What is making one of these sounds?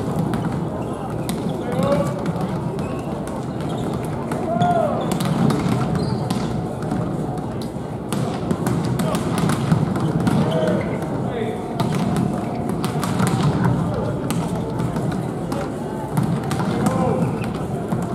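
The sound echoes around a large hall.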